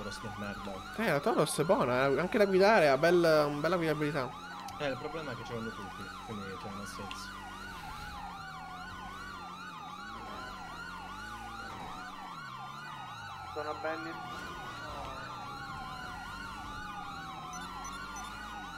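Several police sirens wail together, sweeping up and down steadily.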